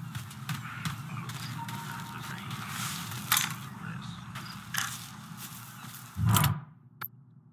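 Leafy bushes rustle as a man pushes through them.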